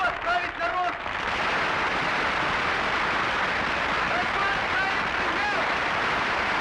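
Men in a crowd shout and cheer.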